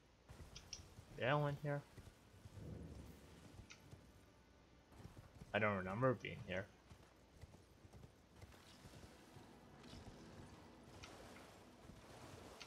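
A horse's hooves clop along at a gallop.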